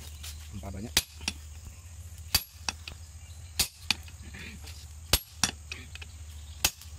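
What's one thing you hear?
A hammer strikes hot metal on an anvil in sharp ringing blows.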